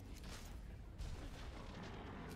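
An explosion booms with a fiery roar.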